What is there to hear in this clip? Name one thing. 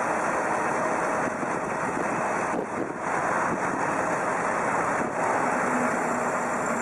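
A tractor engine roars under heavy load.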